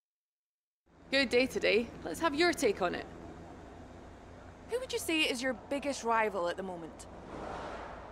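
A young woman speaks brightly into a microphone.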